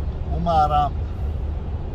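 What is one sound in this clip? A young man's voice calls out briefly nearby.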